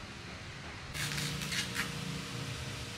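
A knife scrapes against a hard surface.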